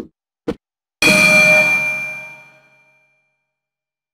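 A bell rings loudly and fades.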